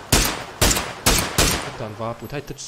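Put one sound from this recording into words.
Gunshots crack loudly in quick succession.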